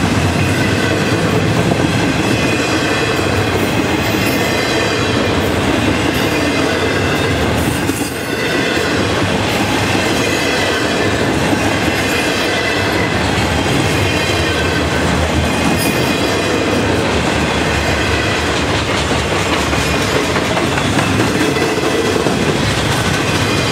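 A freight train rumbles and clatters past up close.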